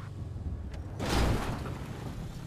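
A car lands with a heavy thud.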